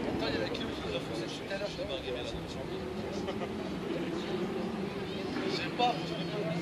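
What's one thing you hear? A crowd of men and women chatters at a distance outdoors.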